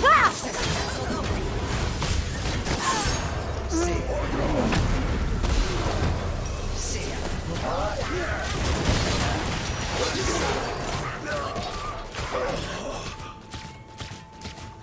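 Magic spells whoosh and blast in a video game battle.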